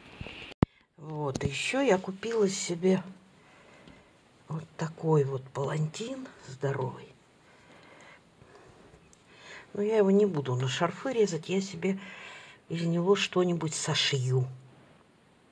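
A young woman talks calmly, close by.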